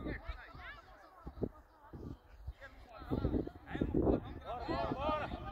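Young men shout and call out to each other outdoors at a distance.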